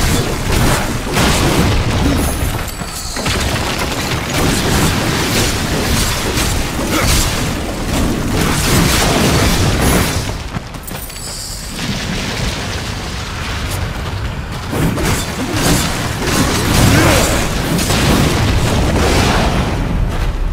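Blades clash and slash with heavy impacts.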